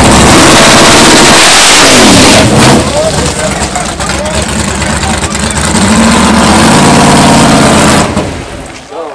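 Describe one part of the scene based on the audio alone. A race car engine roars loudly at full throttle.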